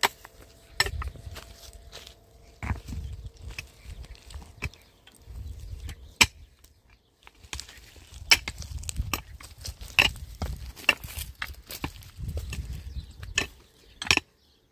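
Loose stones and earth scrape and rattle.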